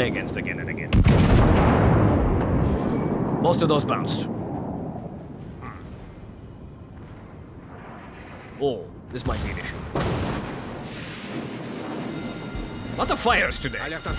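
Heavy guns fire with deep, loud booms that rumble away.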